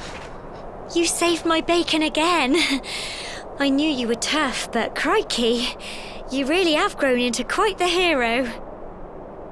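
A young woman speaks cheerfully and with animation.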